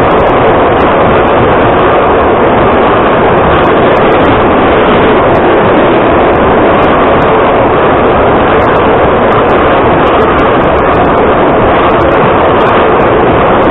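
Train wheels clatter and click on the rails.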